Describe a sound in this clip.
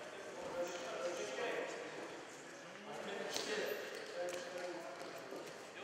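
People talk in the background of a large echoing hall.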